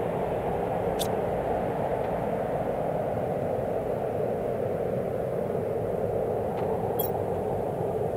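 A game menu clicks as it opens and closes.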